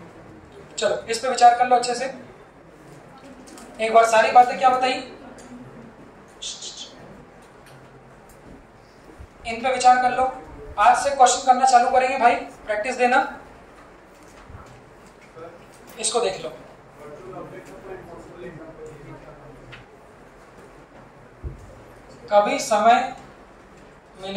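A man speaks into a microphone, explaining in short bursts.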